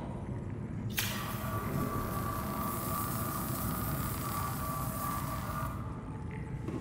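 A repair tool hums and crackles steadily.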